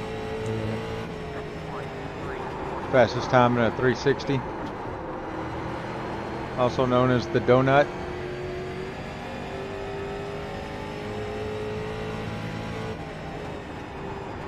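A race car engine drones steadily, shifting pitch as the car speeds around the track.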